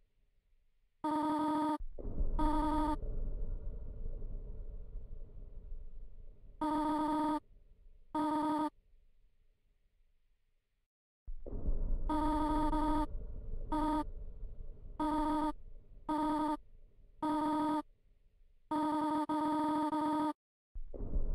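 Bursts of quick electronic beeps chirp as text types out.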